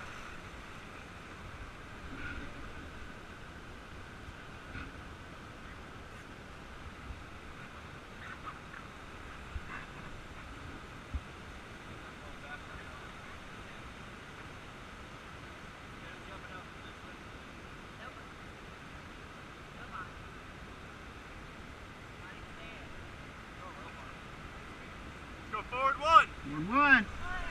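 River rapids rush and splash steadily around a raft.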